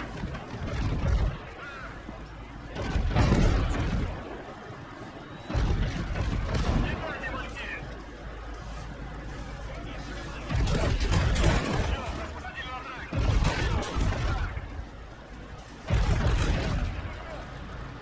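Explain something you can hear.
Heavy artillery guns fire with deep booming blasts.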